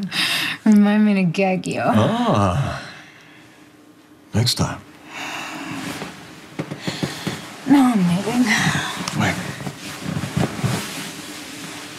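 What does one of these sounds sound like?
A man speaks quietly and tenderly close by.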